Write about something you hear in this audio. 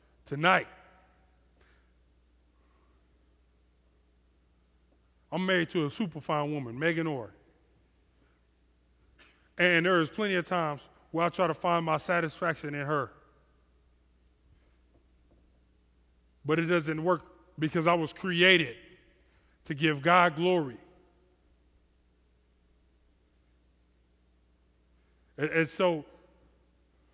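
A man speaks calmly through a headset microphone, pausing between phrases.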